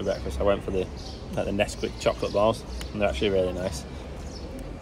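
A young man talks casually and close by.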